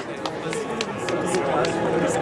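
A brass band starts playing softly again.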